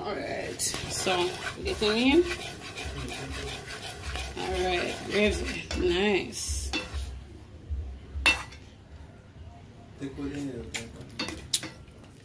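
A metal spoon stirs and scrapes against a pot.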